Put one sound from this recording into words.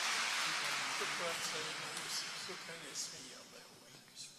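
Men murmur quietly nearby in a large echoing hall.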